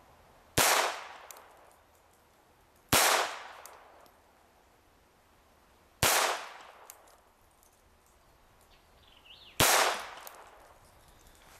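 A handgun fires sharp single shots outdoors, each echoing briefly.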